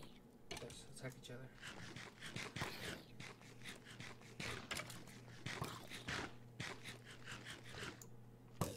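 A game character chews and eats noisily.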